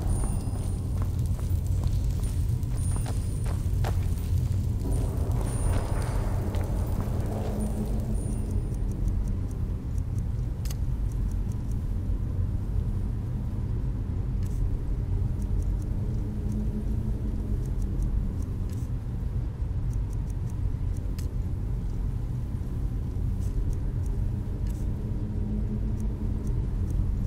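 A magic spell hums and crackles steadily.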